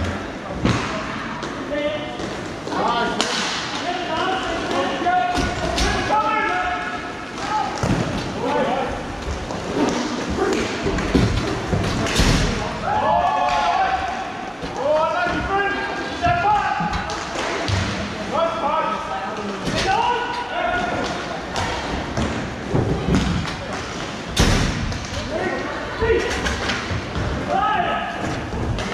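Skate wheels roll and rumble across a hard floor.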